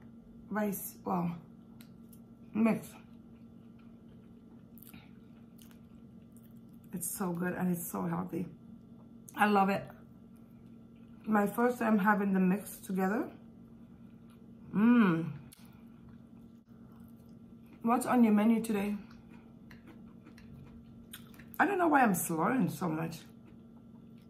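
A woman speaks close to a microphone in short, expressive bursts between bites.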